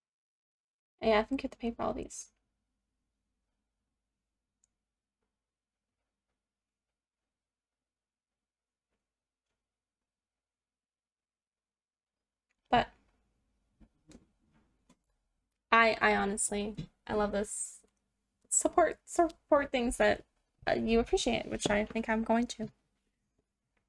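A young woman talks calmly into a microphone, in short bursts with pauses.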